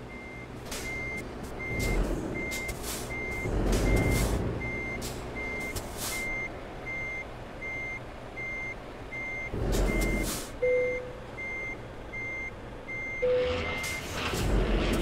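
A truck's reversing alarm beeps.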